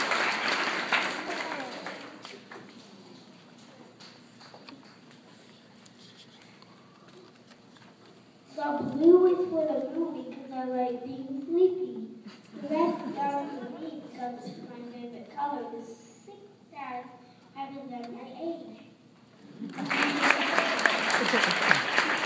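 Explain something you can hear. An audience claps and cheers.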